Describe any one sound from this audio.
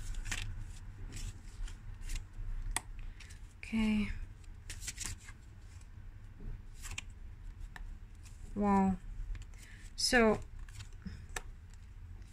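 Playing cards are laid down softly on a cloth, one after another.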